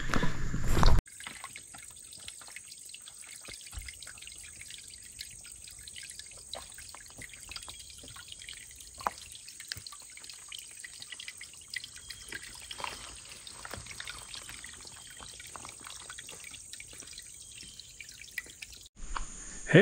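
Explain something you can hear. Footsteps crunch softly on a dirt trail.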